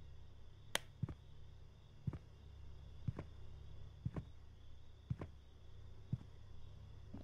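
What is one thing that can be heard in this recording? Footsteps fall indoors at a walking pace.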